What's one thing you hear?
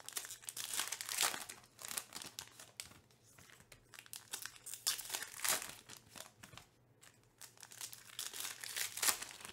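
Foil wrappers crinkle and tear as packs are ripped open.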